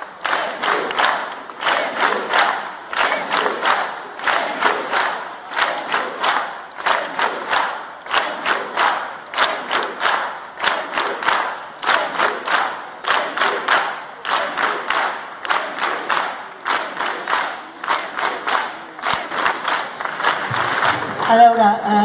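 A crowd of men and women chants loudly outdoors.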